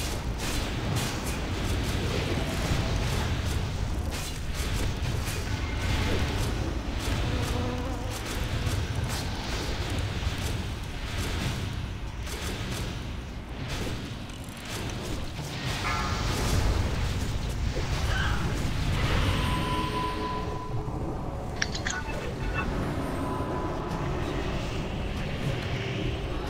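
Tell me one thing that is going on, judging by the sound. Magic spells crackle and whoosh amid clashing combat sounds.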